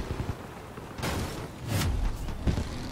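Gunshots strike metal with sharp cracks.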